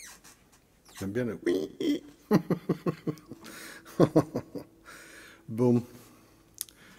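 An older man speaks and laughs casually, close to a microphone.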